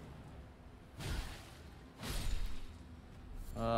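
A fiery blast bursts with a loud whoosh.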